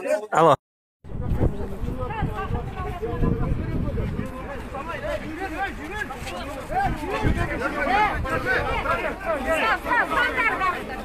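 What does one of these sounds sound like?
A crowd of men and women talk and shout over one another outdoors.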